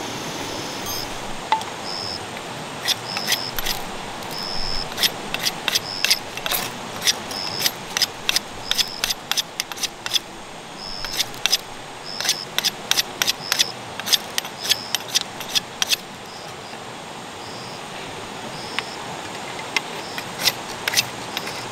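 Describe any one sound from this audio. A metal rod scrapes sharply against a knife blade in quick bursts.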